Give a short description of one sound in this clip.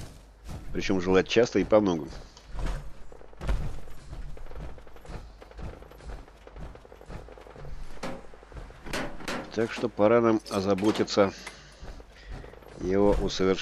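Heavy metallic footsteps thud on hard ground.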